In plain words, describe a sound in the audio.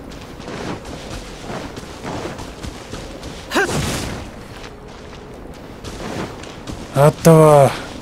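Footsteps crunch over snowy ground.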